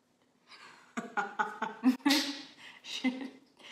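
A young woman claps her hands a few times.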